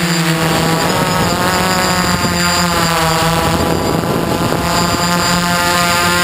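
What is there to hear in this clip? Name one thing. Drone propellers whine loudly and steadily close by, wavering slightly in pitch.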